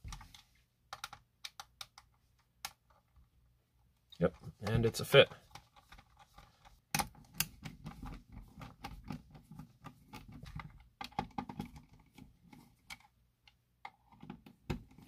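A screwdriver clicks and scrapes as it turns small screws in a plastic case.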